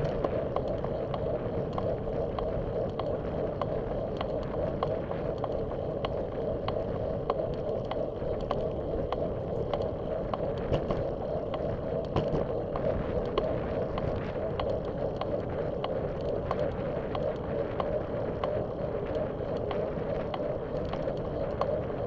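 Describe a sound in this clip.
Wind buffets loudly and steadily outdoors.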